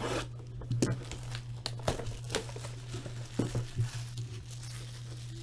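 Plastic wrap crinkles and rustles as hands tear it off a box.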